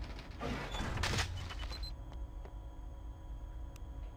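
A short electronic chime sounds as an item is picked up.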